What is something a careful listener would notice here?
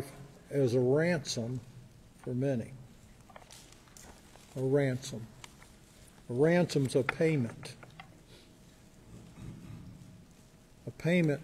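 An elderly man speaks calmly and slowly into a microphone in a large echoing hall.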